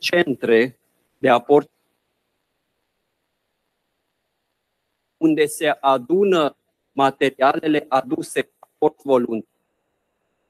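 A middle-aged man speaks calmly into a microphone, heard over an online call.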